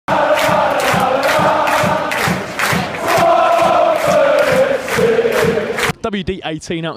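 A large crowd sings a chant loudly in unison.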